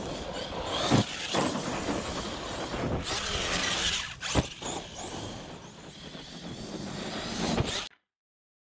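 A toy car lands hard with a thud.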